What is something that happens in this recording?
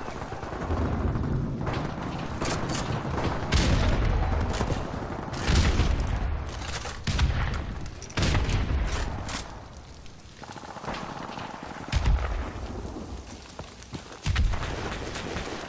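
Gunshots bang in short, loud bursts.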